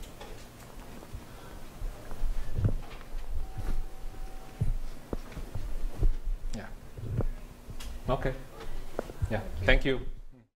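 A man speaks at a distance in a room with some echo.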